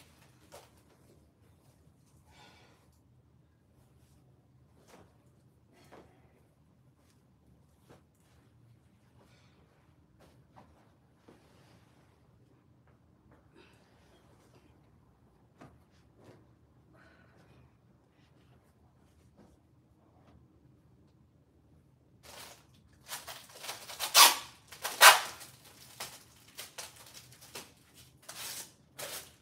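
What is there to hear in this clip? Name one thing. Clothes rustle and flap as they are handled and folded.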